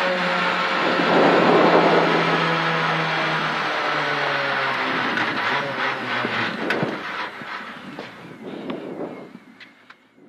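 A rally car engine roars loudly at high revs, then drops as the car slows.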